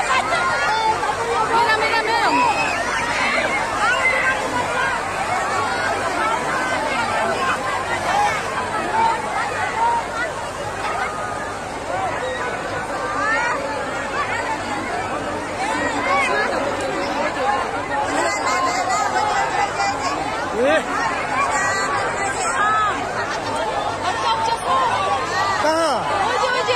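Floodwater rushes and roars nearby.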